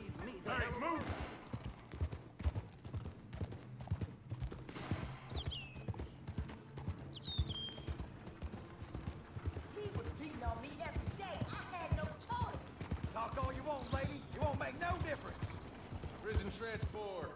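A horse gallops with quick, heavy hoofbeats on a dirt track.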